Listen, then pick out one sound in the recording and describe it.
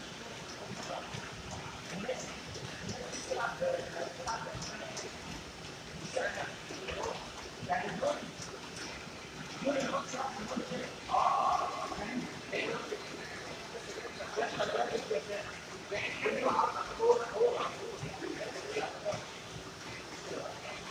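Treadmill motors hum.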